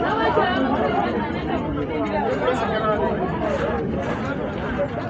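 A crowd of men and women chatter loudly all around outdoors.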